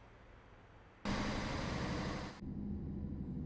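A truck passes close by with a rush of noise.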